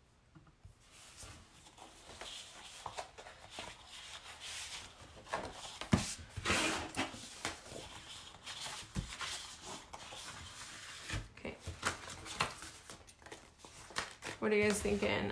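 Sheets of paper rustle and slide against each other.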